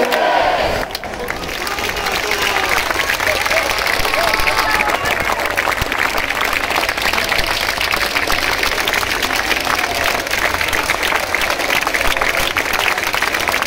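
A large outdoor crowd claps and cheers.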